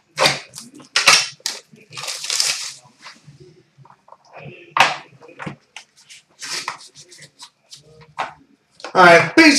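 Cards and wrappers rustle and click as hands handle them.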